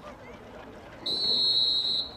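A referee's whistle blows a long, shrill blast.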